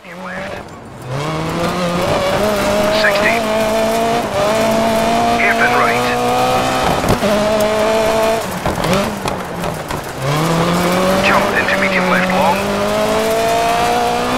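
A rally car engine revs hard and shifts gears.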